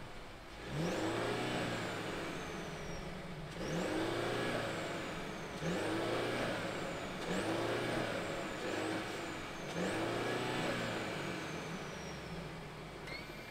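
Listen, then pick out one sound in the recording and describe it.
A car engine revs sharply again and again, close by.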